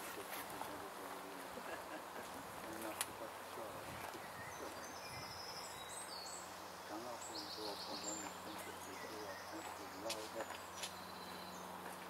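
A small crowd of adults talks quietly outdoors.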